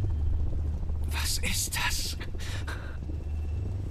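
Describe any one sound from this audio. A young man speaks in pain, close by.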